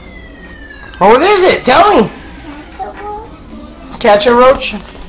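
A young girl speaks loudly and playfully, close by.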